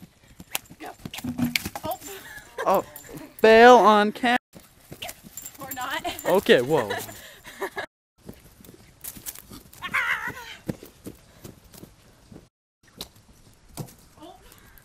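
A pony's hooves thud on grass.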